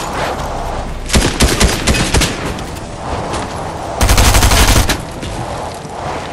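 Tyres crash through bushes and branches.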